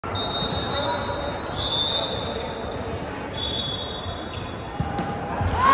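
Young men and women chatter in a large echoing hall.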